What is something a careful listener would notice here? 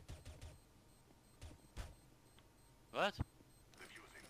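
A silenced pistol fires.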